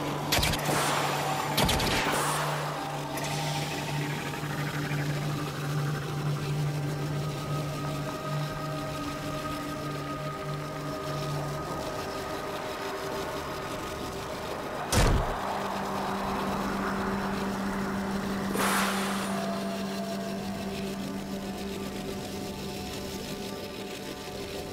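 A spacecraft engine hums steadily.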